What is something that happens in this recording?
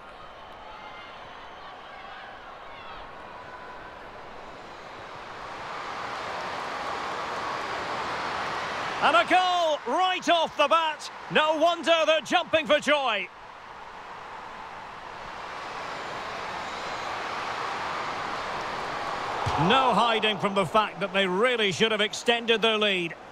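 A stadium crowd roars and swells.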